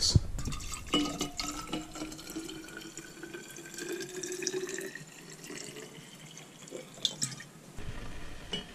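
Liquid pours and gurgles into a flask, rising in pitch as it fills.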